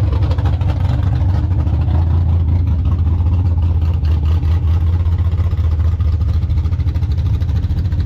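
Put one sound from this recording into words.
An engine idles with a deep, steady rumble close by.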